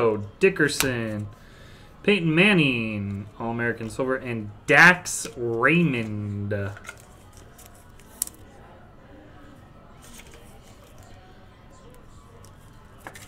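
Trading cards rustle and slide softly between fingers.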